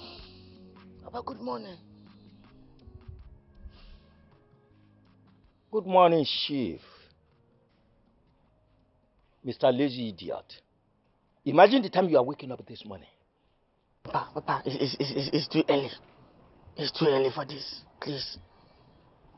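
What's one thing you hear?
A middle-aged man speaks with emotion, close by.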